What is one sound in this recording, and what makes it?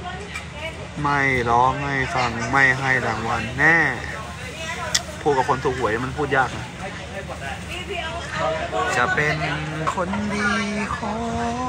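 A young man talks with animation, close by.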